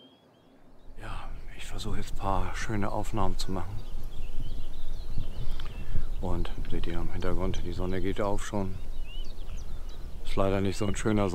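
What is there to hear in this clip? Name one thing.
A middle-aged man talks calmly close to a microphone.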